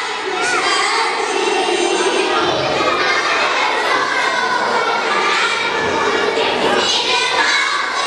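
A crowd of children chatters nearby.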